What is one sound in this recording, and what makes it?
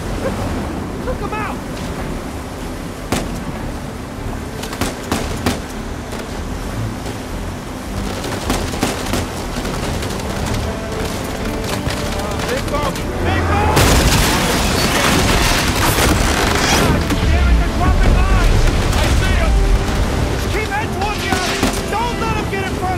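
Heavy waves crash and splash around a boat.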